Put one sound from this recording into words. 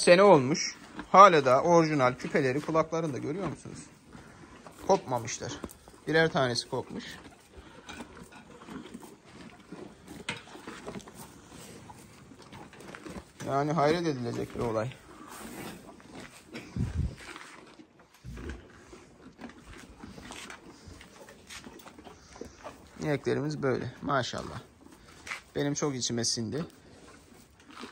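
Cows munch and snuffle at their feed close by.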